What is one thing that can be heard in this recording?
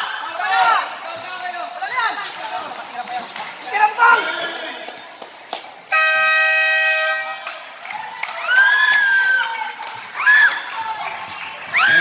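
Sneakers squeak sharply on a hard court.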